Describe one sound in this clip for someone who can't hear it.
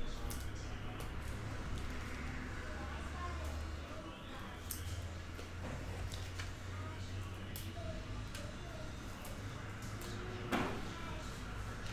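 Trading cards click and tap on a table.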